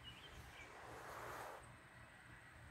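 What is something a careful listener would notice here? A man exhales smoke in a long, soft breath.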